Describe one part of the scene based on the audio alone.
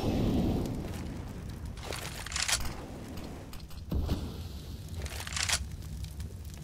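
Rifle shots crack in quick bursts.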